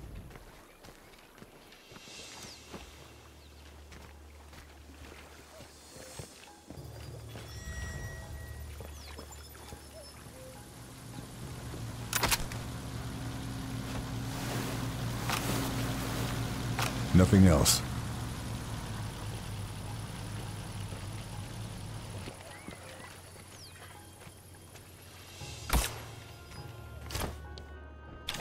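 Soft footsteps crunch on gravel.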